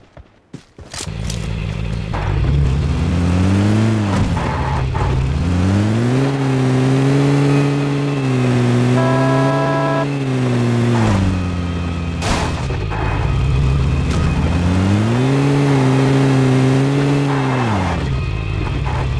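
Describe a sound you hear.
A vehicle engine hums and revs up and down as it drives.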